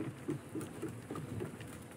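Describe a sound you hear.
A small fire crackles.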